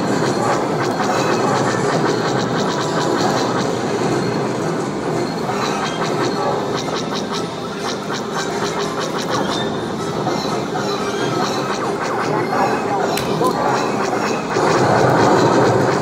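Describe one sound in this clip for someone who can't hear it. Rapid laser blasts from an arcade shooting game fire again and again.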